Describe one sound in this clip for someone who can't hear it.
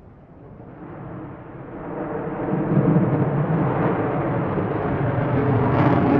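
A jet aircraft roars as it flies past, growing louder.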